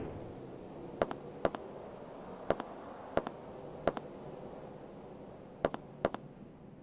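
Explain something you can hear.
Footsteps tap on concrete.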